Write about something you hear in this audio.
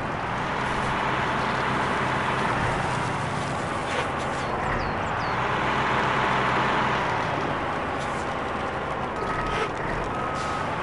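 Tyres churn through mud.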